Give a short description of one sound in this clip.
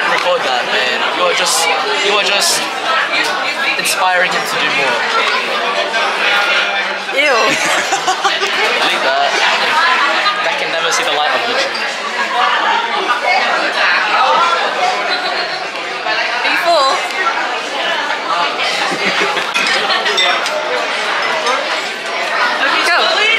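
A crowd of people chatters in a busy, echoing room.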